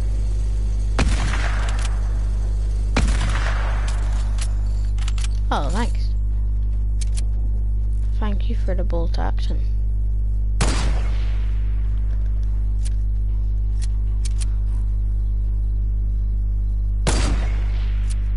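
A gun fires loud, sharp shots that echo briefly.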